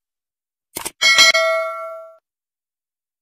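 A bright bell chimes and rings out.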